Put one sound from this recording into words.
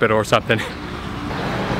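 A young man speaks with excitement close to the microphone.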